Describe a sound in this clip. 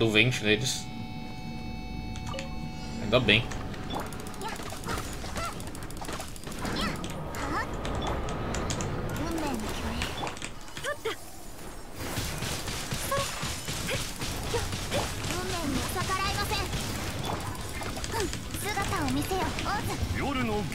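Game sword slashes and ice magic blasts crackle and burst.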